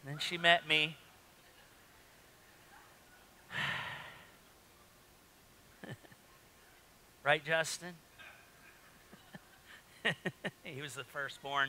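A man speaks with animation through a microphone in a large room, pausing between phrases.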